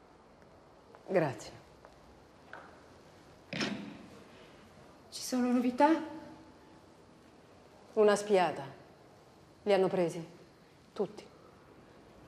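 An elderly woman speaks quietly and calmly.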